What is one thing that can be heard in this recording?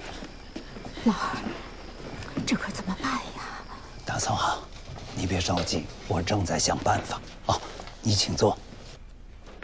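A middle-aged man speaks anxiously and urgently, close by.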